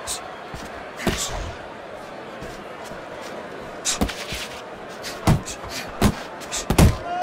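Boxing gloves land heavy punches on a body.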